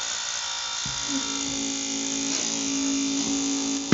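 A small electric motor whirs steadily.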